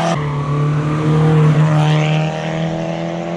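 A rally car speeds close past with a rushing whoosh.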